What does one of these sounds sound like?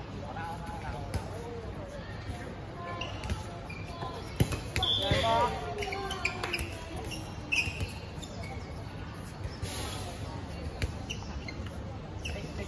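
Young girls shout and call out outdoors.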